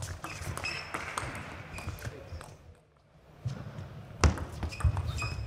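A table tennis ball clicks quickly back and forth off paddles and the table.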